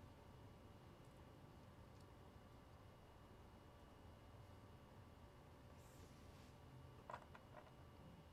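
Cards and card packs rustle and click softly as they are handled.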